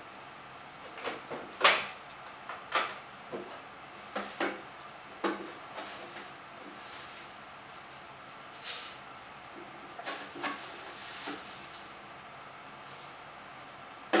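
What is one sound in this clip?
Dishes clink and clatter on a counter.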